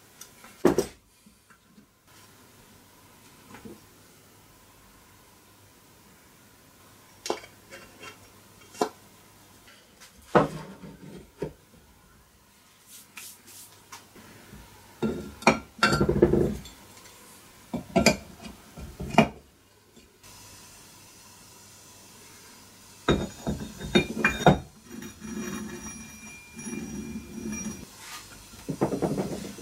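Metal engine parts clink and knock as they are handled and fitted together.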